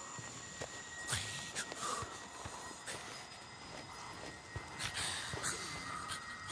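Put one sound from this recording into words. Footsteps crunch softly on dry ground.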